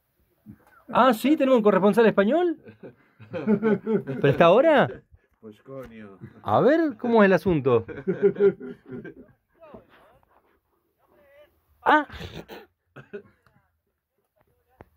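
An older man laughs heartily close by.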